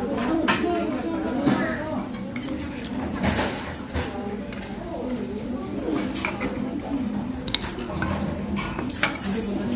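A metal spoon clinks against a stone pot.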